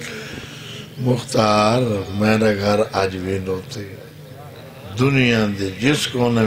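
A young man chants loudly and with feeling into a microphone, heard over loudspeakers.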